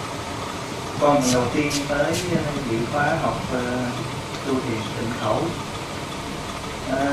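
A young man speaks into a microphone in an echoing hall.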